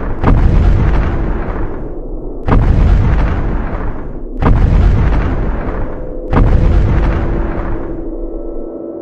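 Heavy booming footsteps thud slowly, each one rumbling and fading.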